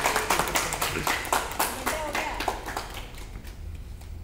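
Several people clap their hands quickly.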